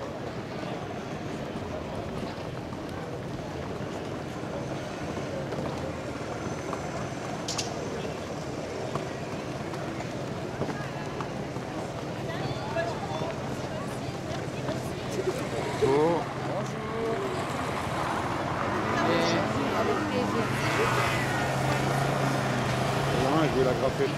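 A crowd murmurs outdoors in an open square.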